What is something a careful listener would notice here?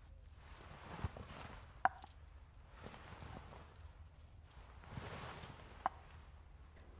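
Porcelain teacups clink softly on a tray.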